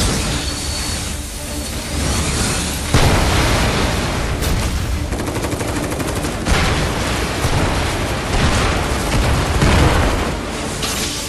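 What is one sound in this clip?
Laser beams zap and crackle.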